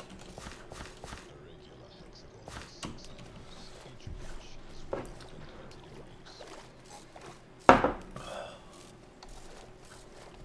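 Water splashes softly as someone swims.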